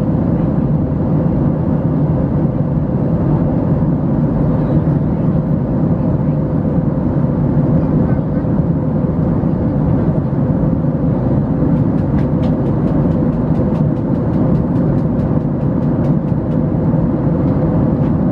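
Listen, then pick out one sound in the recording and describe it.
An airliner's engines roar in a steady, deep drone inside the cabin.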